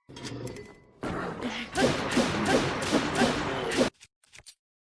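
A bright energy blast roars and whooshes.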